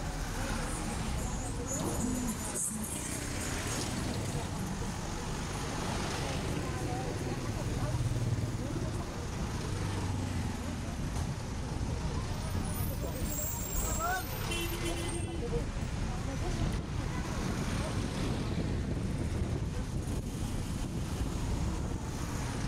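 A car engine hums steadily as the car drives slowly along a street.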